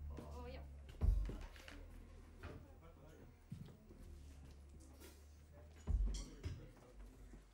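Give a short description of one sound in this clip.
A drummer hits a drum kit.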